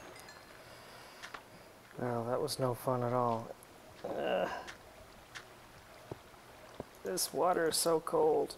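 Water trickles and flows softly nearby.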